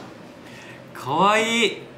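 A young man exclaims with a rising, delighted voice.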